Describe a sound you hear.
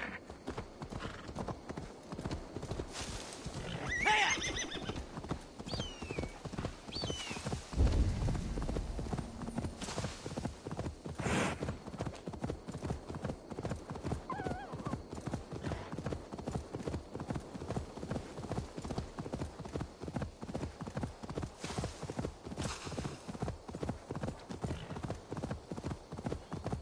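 A horse's hooves thud in a quick, steady gallop over soft ground.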